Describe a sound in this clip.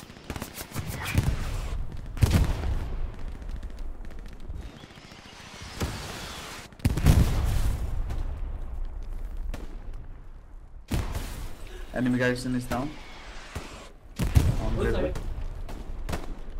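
Artillery shells explode with deep booms.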